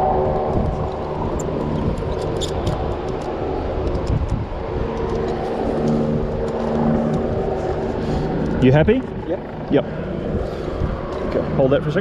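Metal carabiners clink together.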